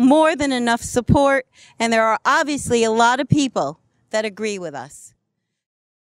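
A middle-aged woman speaks clearly into a microphone.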